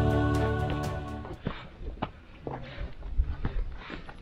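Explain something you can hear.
Footsteps scuff on a rocky path.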